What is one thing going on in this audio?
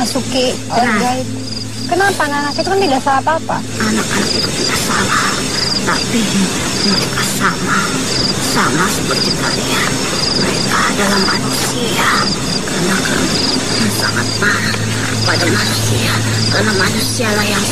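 A woman speaks slowly in a low, eerie voice.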